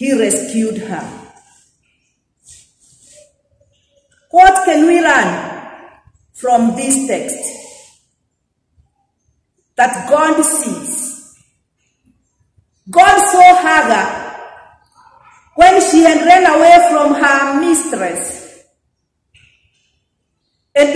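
A woman speaks slowly and calmly in phrases, with pauses between them, in a room with a slight echo.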